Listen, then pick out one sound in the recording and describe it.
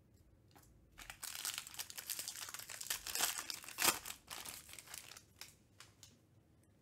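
A foil wrapper crinkles and tears as it is opened.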